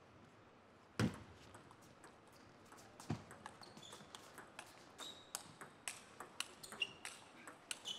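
A table tennis ball clicks sharply back and forth off paddles and a table.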